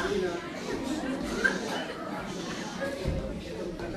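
A boy speaks into a microphone.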